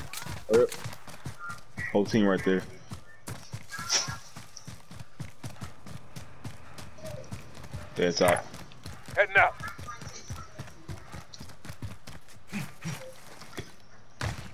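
Footsteps run quickly over grass and pavement.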